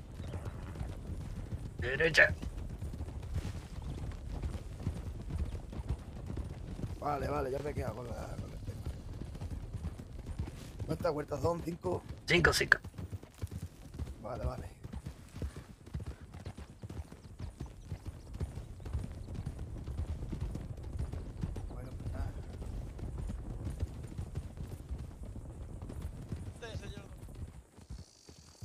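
Horses gallop with hooves thudding on a dirt track.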